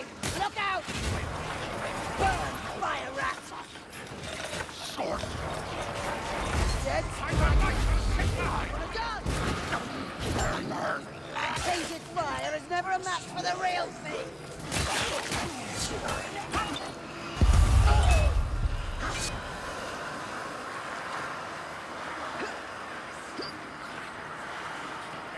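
Weapons strike and slash into enemies with wet, crunching hits.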